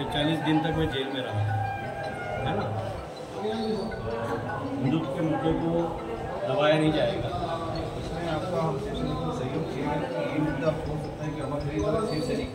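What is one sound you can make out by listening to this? A crowd of men murmur and talk in the background.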